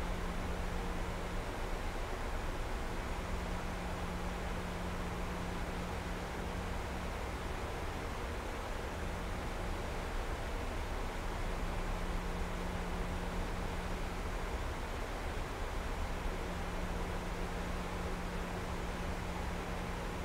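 Jet engines roar steadily in flight.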